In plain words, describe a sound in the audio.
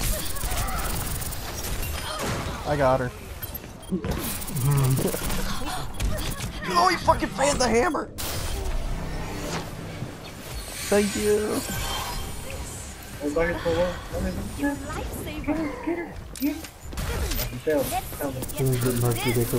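A game weapon sprays with a hissing rush.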